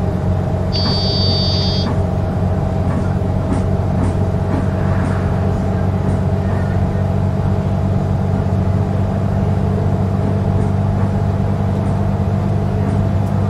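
A bus engine drones steadily at low speed.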